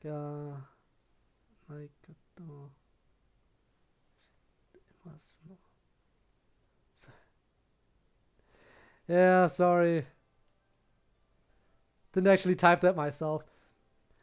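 A young man speaks calmly and close into a microphone, in short bursts.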